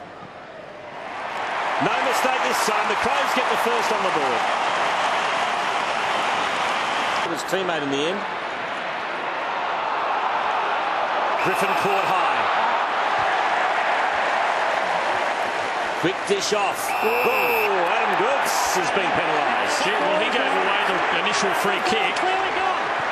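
A large crowd roars and cheers loudly in a big stadium.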